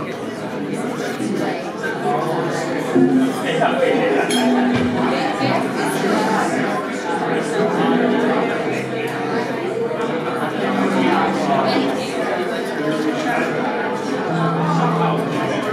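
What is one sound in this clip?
Cymbals and drums keep a busy beat.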